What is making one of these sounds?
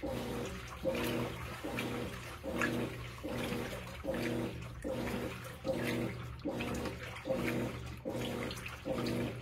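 Water sloshes and churns inside a washing machine drum.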